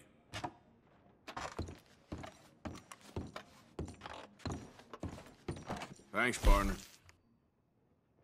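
Boots thud on wooden floorboards.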